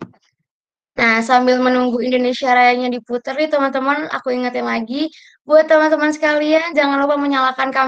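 A young woman speaks with animation, close to a microphone, as if on an online call.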